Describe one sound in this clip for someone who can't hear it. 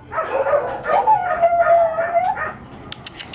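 A dog whines.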